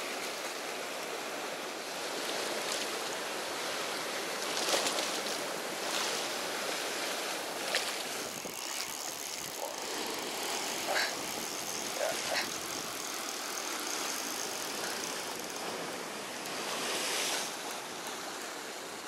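Wind rushes steadily over a moving boat.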